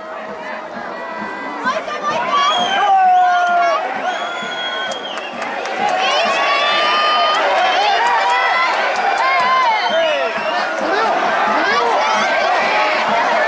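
A large stadium crowd chants and cheers loudly outdoors.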